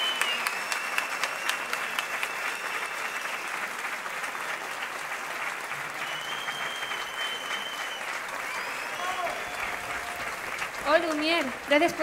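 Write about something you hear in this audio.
An audience applauds and cheers in a large open space.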